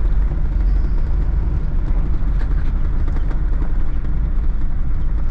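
Tyres crunch over gravel.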